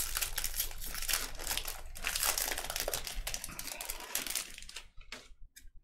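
Foil wrappers crinkle as packs are torn open.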